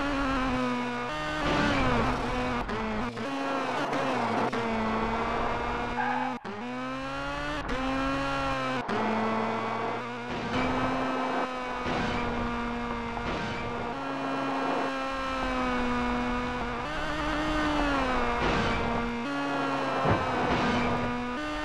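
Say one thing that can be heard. Gravel sprays under a car's tyres.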